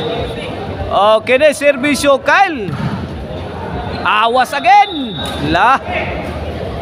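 Spectators shout and cheer loudly in short bursts.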